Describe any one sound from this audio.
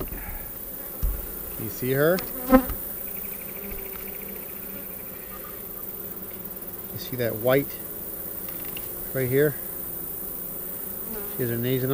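Bees buzz softly close by.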